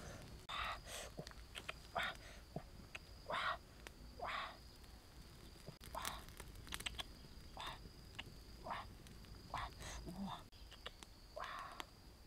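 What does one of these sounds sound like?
A wood fire crackles and pops.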